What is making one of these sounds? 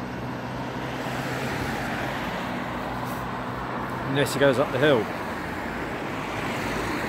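A car approaches along the road.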